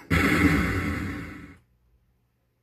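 Arcade game music and sound effects play loudly, then cut off abruptly.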